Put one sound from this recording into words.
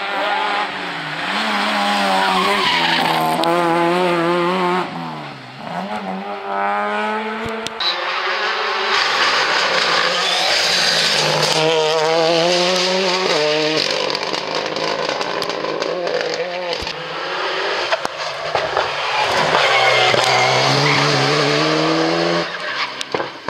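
Rally car engines roar loudly and rev up and down as the cars speed past.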